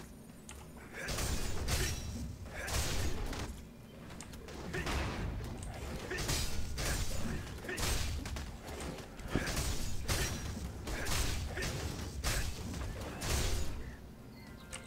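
Blades slash and strike in repeated bursts of combat.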